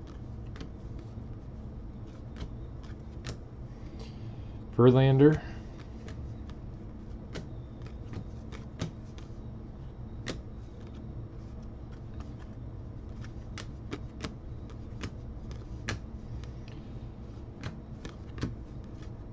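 Trading cards flick and snap as they are shuffled by hand.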